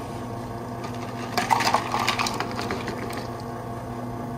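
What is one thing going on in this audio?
Ice cubes clatter into a plastic cup.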